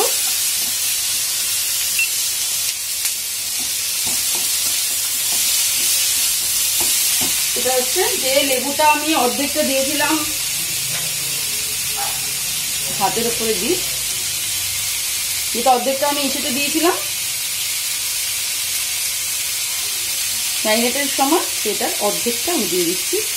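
Food sizzles steadily in a hot pan.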